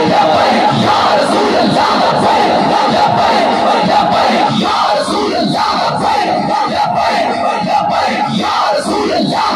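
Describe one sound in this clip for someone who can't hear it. A large crowd of men chants loudly together.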